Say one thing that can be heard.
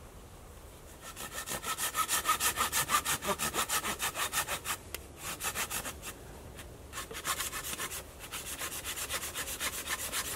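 A hand saw cuts through wood with quick, rhythmic strokes.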